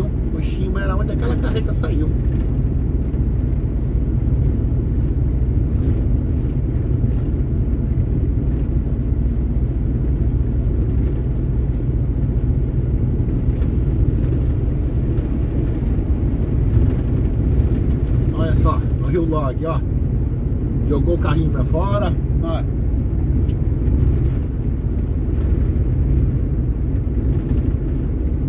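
A vehicle's engine rumbles steadily while driving along a road.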